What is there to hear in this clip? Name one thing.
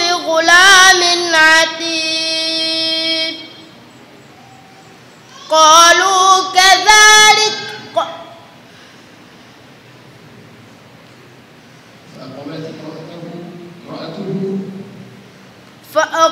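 A boy chants melodically into a microphone, his voice ringing with echo.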